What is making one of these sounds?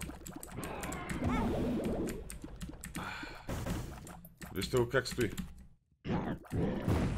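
Game sound effects pop and click rapidly.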